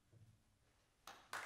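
A cymbal crashes twice near the end.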